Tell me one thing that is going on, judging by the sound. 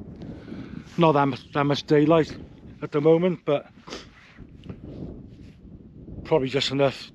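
A middle-aged man talks calmly close to the microphone.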